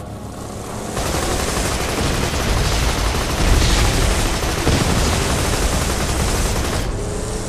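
A vehicle's gun fires in rapid bursts.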